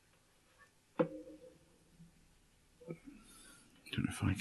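A small plastic game console knocks lightly onto a hard surface.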